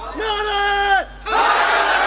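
A man chants with a long, drawn-out voice through a loudspeaker.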